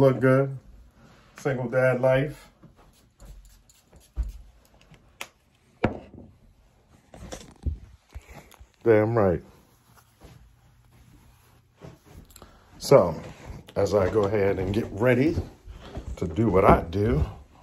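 A man talks animatedly close by.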